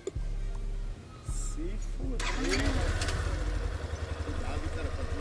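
A motorcycle engine idles with a low, uneven rumble.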